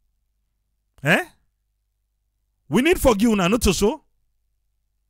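An elderly man speaks through a microphone in short phrases.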